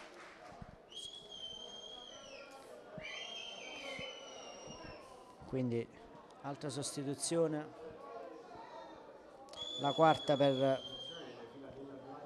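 A referee's whistle blows several sharp, long blasts outdoors.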